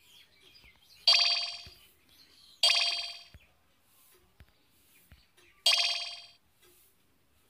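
Short bright chimes ring out as menu choices are made.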